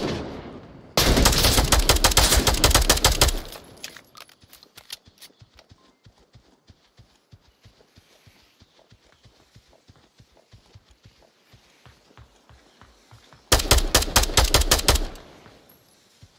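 A gun fires rapid bursts of shots up close.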